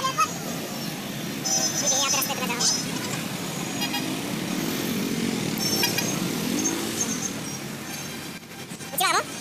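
Motorbike engines rumble nearby in busy street traffic.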